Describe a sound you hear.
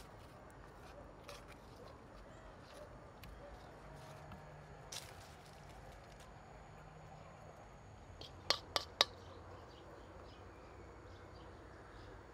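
A wooden spoon scrapes and stirs a thick sauce in a metal bowl.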